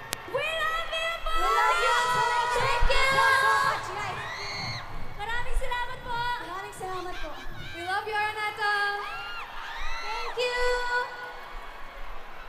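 Young women call out excitedly through microphones over loudspeakers.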